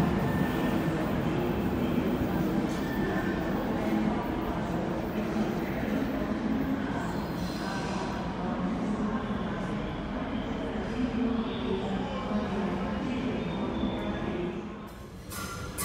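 A train rumbles along the tracks in the distance.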